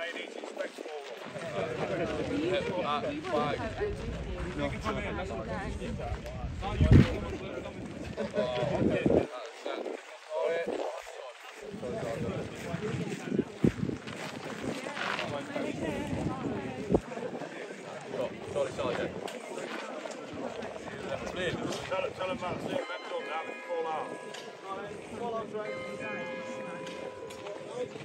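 A small crowd of men chatters and laughs nearby.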